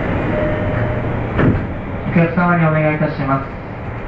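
A train rumbles out of a station.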